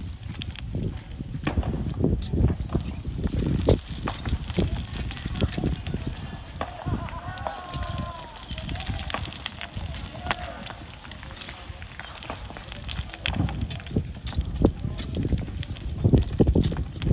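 A metal bar knocks and scrapes against loose rock.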